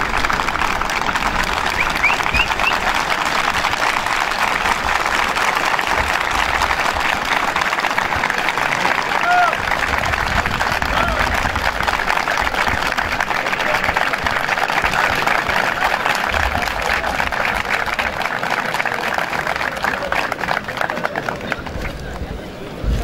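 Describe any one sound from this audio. A large crowd applauds steadily outdoors.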